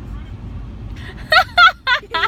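A young woman talks excitedly and laughs close by.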